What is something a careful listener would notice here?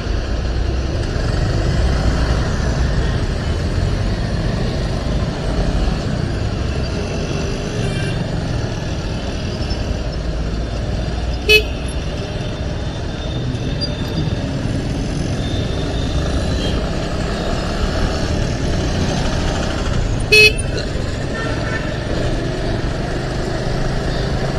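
Motor traffic rumbles steadily nearby on a busy street.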